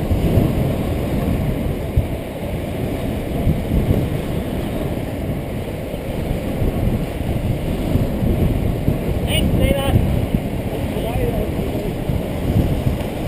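Wind rushes past a helmet at speed.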